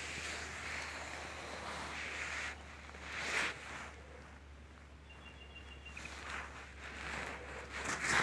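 An animal's paws rustle softly through grass.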